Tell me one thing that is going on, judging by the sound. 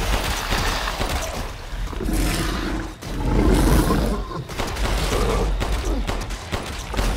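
Pistol shots ring out loudly.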